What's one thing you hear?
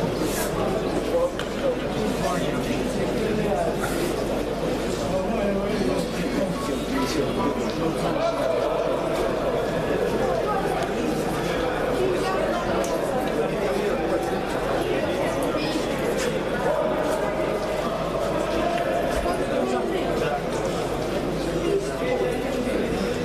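A crowd of people chatters steadily in a large echoing hall.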